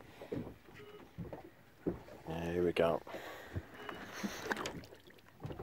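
Small waves lap and splash against the side of a boat.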